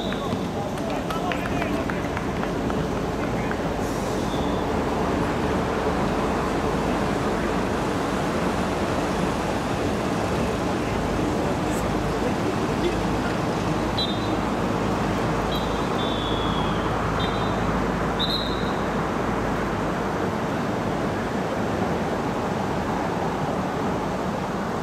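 Players shout to each other across the pitch.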